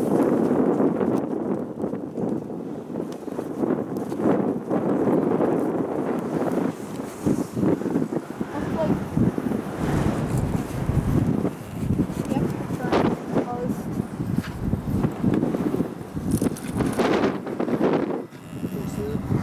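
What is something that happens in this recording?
Wind buffets loudly outdoors, rumbling steadily throughout.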